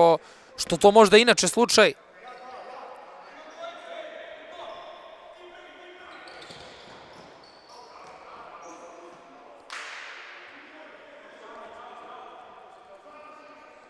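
A ball thuds as a player kicks it.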